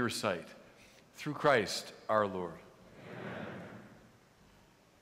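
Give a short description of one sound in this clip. A middle-aged man chants through a microphone in a large echoing hall.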